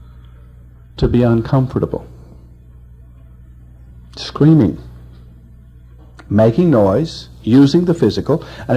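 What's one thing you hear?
An elderly man speaks calmly with pauses, heard through a microphone.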